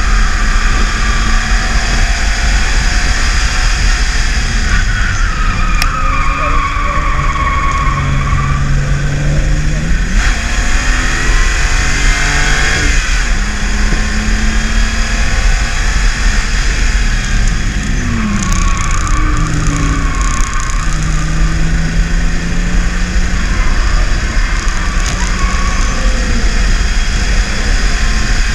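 Wind and road noise rush steadily around the car.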